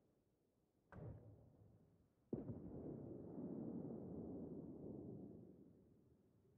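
Heavy ship guns fire with loud booms that rumble away.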